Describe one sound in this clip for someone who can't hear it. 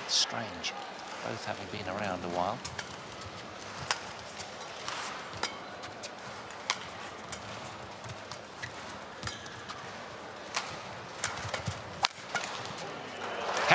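Sports shoes squeak on a court floor.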